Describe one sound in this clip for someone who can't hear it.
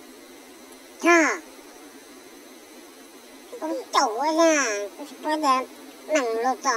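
A man speaks in a high, playful voice close by.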